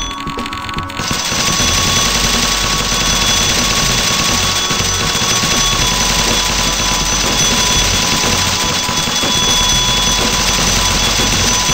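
Short electronic purchase sounds repeat rapidly.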